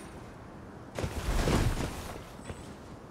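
A figure drops down and lands with a heavy rush and thud.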